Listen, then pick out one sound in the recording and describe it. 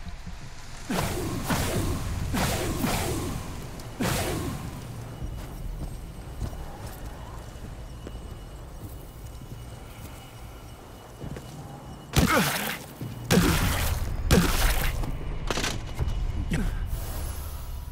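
Heavy blows strike a creature with loud thuds.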